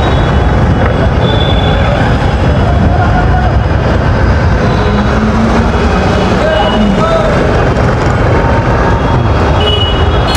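A motorcycle engine passes close by.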